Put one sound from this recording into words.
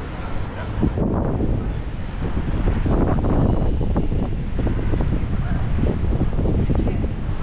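Men talk casually close by outdoors.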